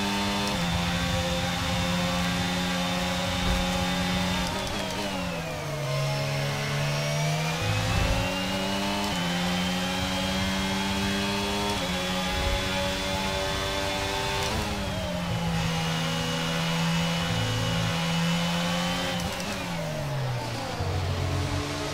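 A racing car engine screams at high revs, dropping in pitch as it brakes for corners and rising again as it accelerates.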